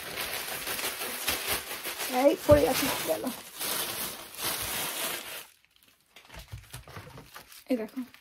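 Plastic bags and packets rustle and crinkle as they are handled.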